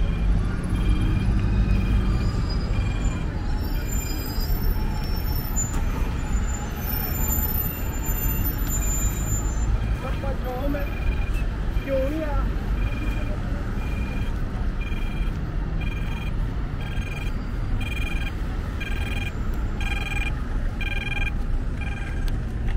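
A pedestrian crossing signal beeps in a steady rhythm that speeds up.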